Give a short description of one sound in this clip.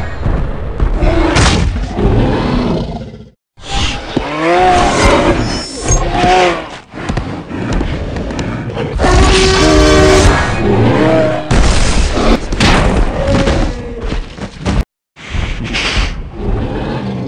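Large beasts roar and growl loudly.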